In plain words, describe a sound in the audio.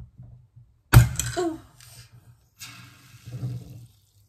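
Soda fizzes and hisses as it foams out of a bottle.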